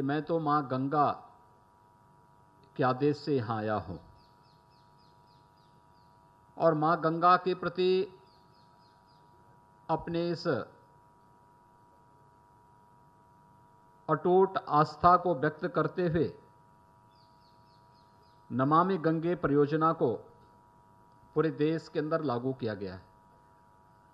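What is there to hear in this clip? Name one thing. A middle-aged man gives a speech through a microphone and loudspeakers, speaking forcefully in short bursts with pauses.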